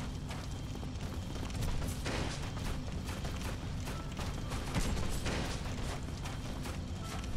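Swords swing and strike heavily in a fight.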